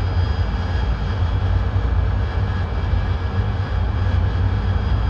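A jet engine roars steadily with a deep rumble.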